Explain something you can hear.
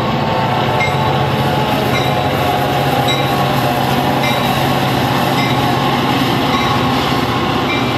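A diesel train rumbles past close by.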